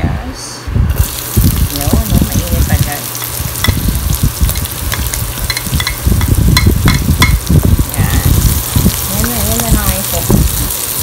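Onions sizzle loudly in hot oil.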